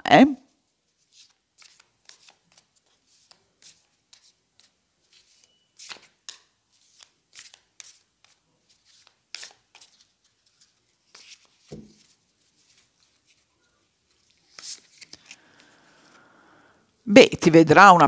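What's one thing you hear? Playing cards are shuffled with soft shuffling sounds.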